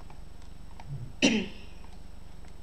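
A boy makes a short, sudden exclamation close to a microphone.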